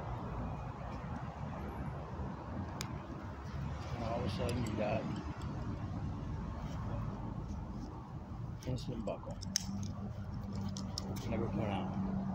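Plastic buckles click and snap.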